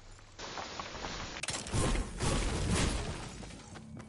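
A pickaxe chops into a tree trunk.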